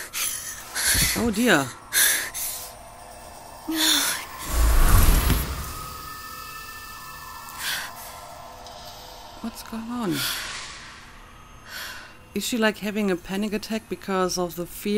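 A young woman speaks softly and strained, close by.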